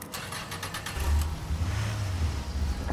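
A car engine starts and revs loudly.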